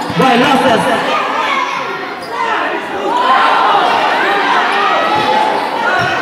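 A large crowd cheers and shouts loudly nearby.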